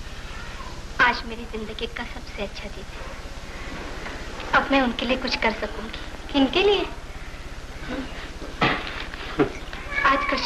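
A young woman speaks with animation, heard through an old, hissy recording.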